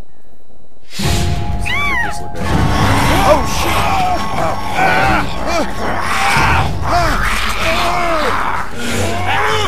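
A zombie snarls and growls loudly.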